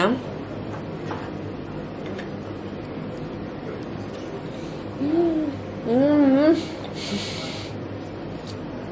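A knife and fork scrape and clink against a plate.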